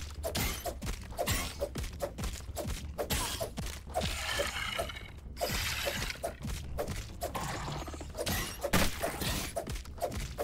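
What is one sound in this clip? Blows from a weapon strike a giant insect again and again.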